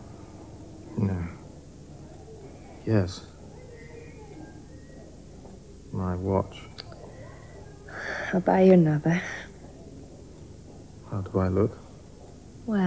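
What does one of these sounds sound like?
A man speaks weakly and hoarsely in short bursts.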